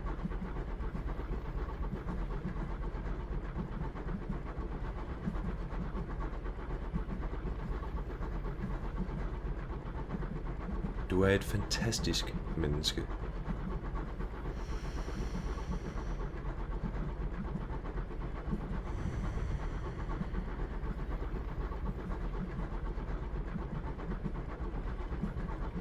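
A train rumbles along on rails.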